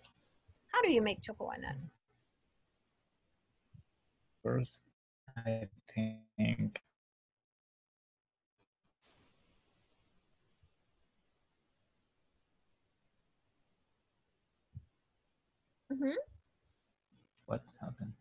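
A woman speaks calmly over an online call, in short bursts with pauses.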